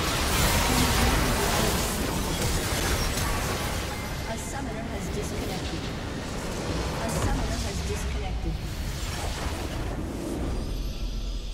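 Loud magical blasts and crashes boom in a fierce battle.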